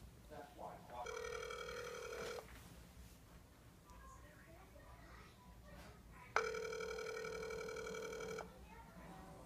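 A phone plays a steady tone through its speaker.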